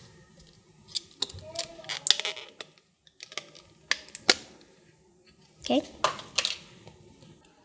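Plastic toy pieces click and rustle in a girl's hands.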